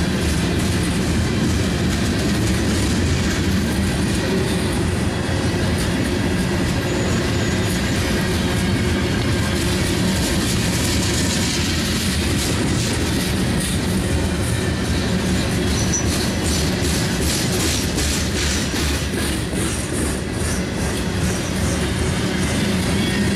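A freight train's wheels rumble steadily along the rails close by.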